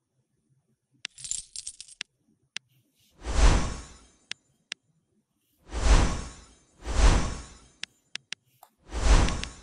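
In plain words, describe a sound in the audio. Fingers tap lightly on a touchscreen.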